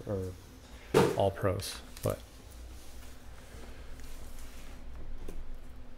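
Cardboard boxes knock and slide as they are stacked.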